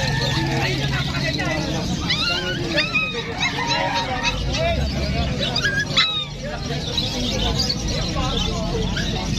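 Birds chirp and twitter busily all around.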